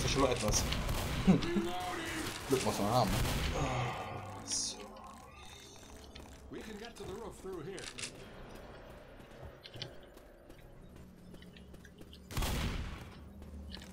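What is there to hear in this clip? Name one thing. Shotguns fire loudly in bursts.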